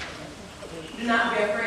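A young woman sings out loudly.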